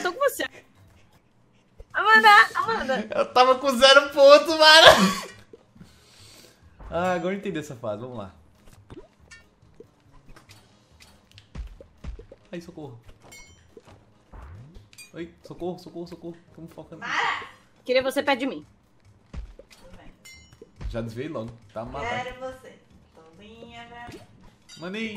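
A young man talks and laughs with animation into a close microphone.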